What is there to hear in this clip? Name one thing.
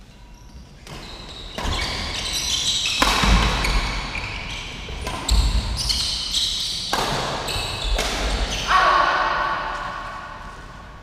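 Rackets strike a shuttlecock back and forth in a large echoing hall.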